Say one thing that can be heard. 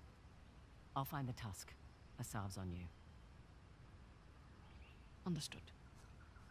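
A second young woman answers calmly, close by.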